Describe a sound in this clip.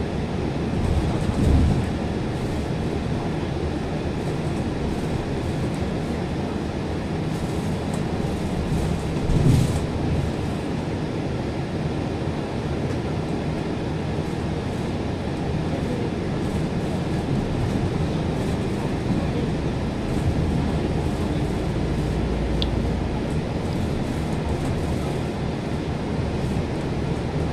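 Traffic passes by on the road outside.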